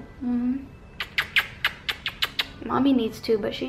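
A woman plants quick kisses on a baby.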